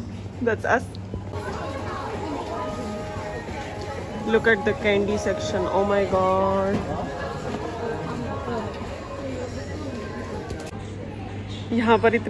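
A young woman speaks excitedly close by.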